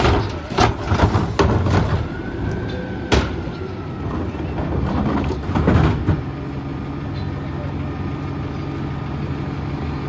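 A garbage truck engine idles with a low steady rumble.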